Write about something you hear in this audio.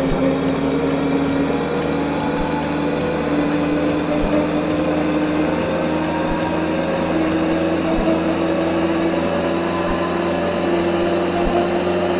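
A van engine hums steadily and slowly rises in pitch as it speeds up.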